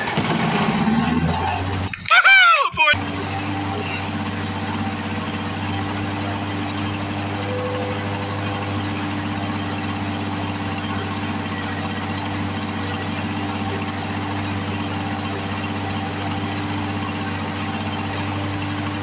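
A lawn mower engine idles with a steady, rumbling hum close by.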